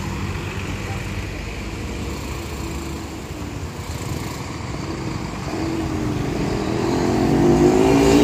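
Traffic passes close by on the road.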